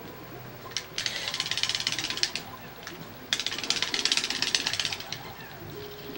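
Many small game creatures chirp and chatter rapidly in high tones.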